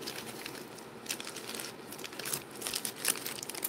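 A padded mailer crackles as fingers press and pull it open.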